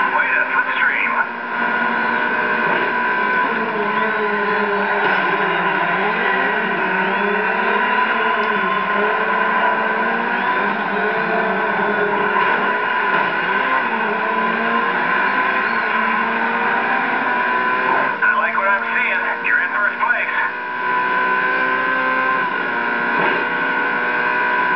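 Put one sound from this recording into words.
Racing car engines roar and whine steadily through a small loudspeaker.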